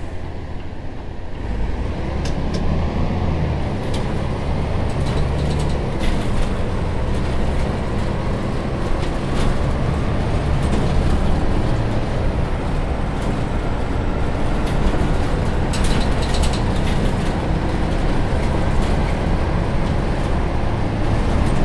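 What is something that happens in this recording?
A city bus engine drones as the bus drives along, heard from the driver's seat.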